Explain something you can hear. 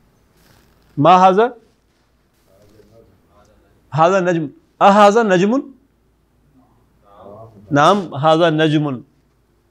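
An elderly man speaks clearly and deliberately into a close microphone, in short phrases with pauses.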